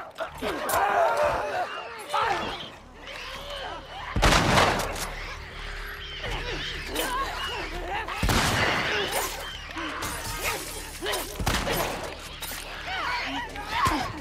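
Heavy blows thud during a scuffle.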